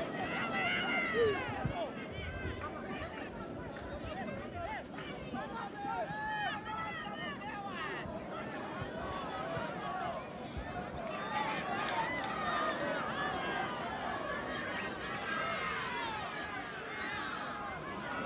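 Football players shout to each other across an open pitch in the distance.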